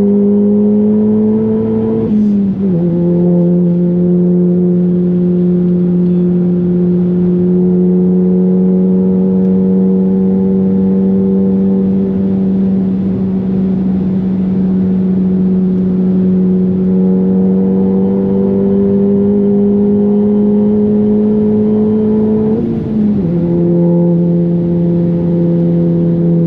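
A car engine drones loudly at high speed, slowly climbing in pitch.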